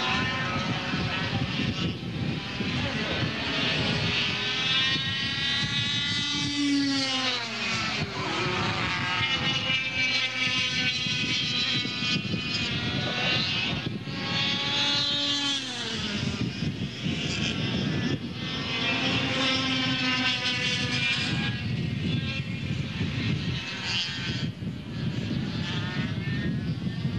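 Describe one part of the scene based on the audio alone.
Kart engines whine and buzz loudly, rising and falling in pitch as the karts race past.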